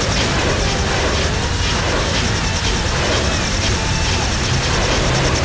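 Energy beams fire with a rapid, steady crackle.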